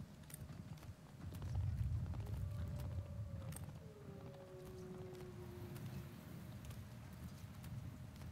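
Wind blows over open snow.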